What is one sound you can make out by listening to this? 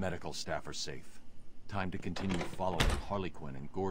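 A heavy metal door thuds and rattles.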